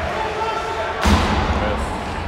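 A hockey puck knocks sharply against the boards.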